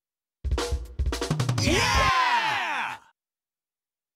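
A video game menu plays a bright chime and a swooshing sound as a choice is confirmed.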